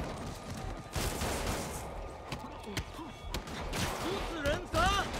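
Punches land with heavy thuds.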